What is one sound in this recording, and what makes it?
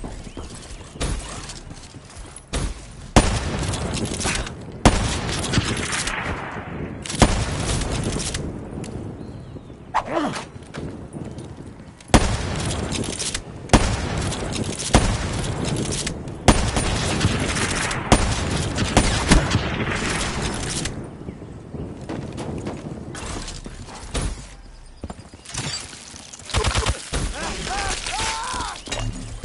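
Gunfire from a video game rings out in sharp bursts.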